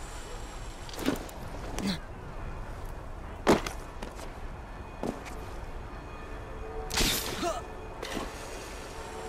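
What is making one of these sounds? Heavy thuds of landing and climbing on stone come now and then.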